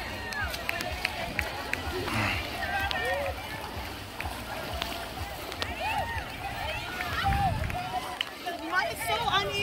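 Feet splash and slosh through shallow muddy water.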